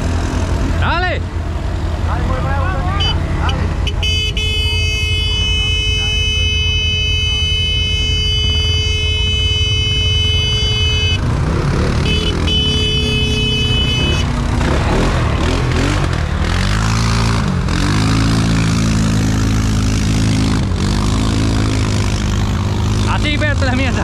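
An off-road vehicle engine idles and rumbles close by.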